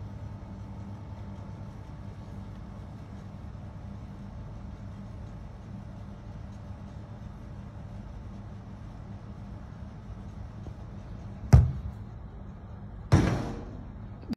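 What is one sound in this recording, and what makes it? An outdoor air conditioning unit hums steadily.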